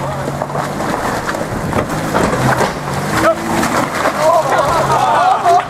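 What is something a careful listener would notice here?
Tyres crunch and scrape over rocks and gravel.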